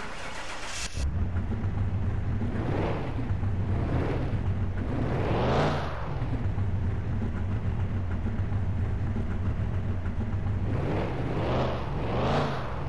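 A car engine starts and revs up and down repeatedly.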